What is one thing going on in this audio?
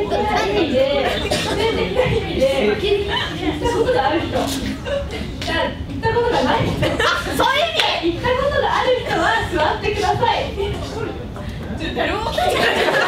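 A young woman speaks loudly with animation to a group in a room.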